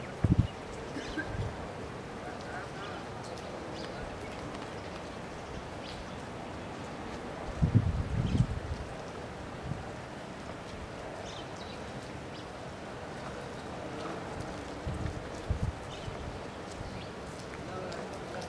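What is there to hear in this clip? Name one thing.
Wind blows outdoors in strong gusts.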